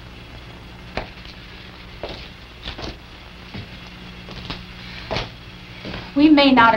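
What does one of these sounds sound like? A man's footsteps knock on a hard floor.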